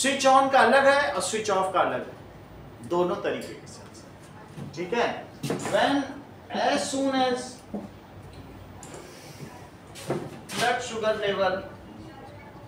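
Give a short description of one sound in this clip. A man lectures clearly, speaking close to a microphone.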